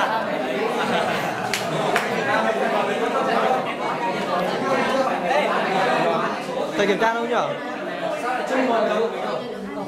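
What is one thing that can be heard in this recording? A crowd of young people chatter loudly in a room with some echo.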